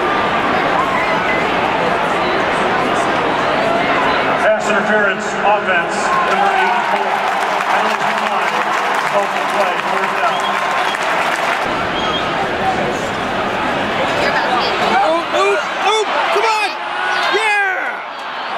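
A large crowd murmurs and cheers in a big echoing stadium.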